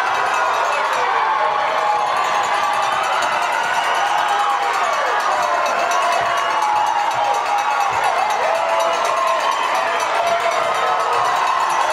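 A crowd claps their hands.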